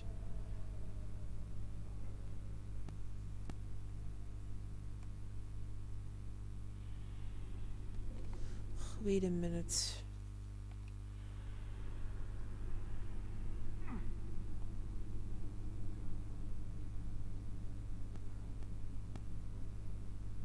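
A young woman talks quietly into a headset microphone.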